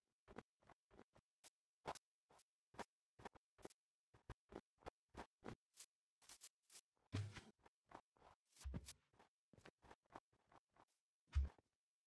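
Footsteps crunch steadily on snow.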